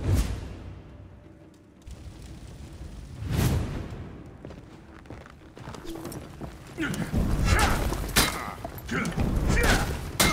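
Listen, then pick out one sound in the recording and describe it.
Flames crackle from burning torches.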